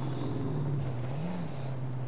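A car engine briefly revs up and drops back.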